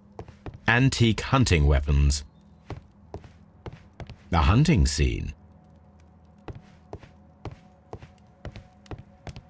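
Footsteps walk steadily across a wooden floor.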